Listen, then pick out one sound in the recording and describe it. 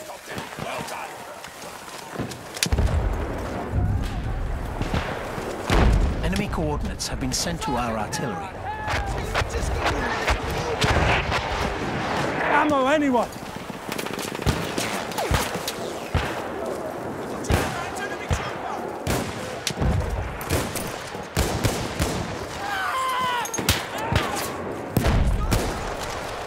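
Gunshots crack repeatedly nearby and far off.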